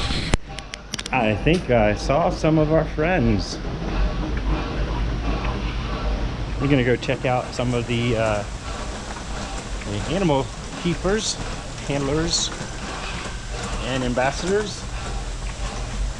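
A middle-aged man talks calmly close to the microphone.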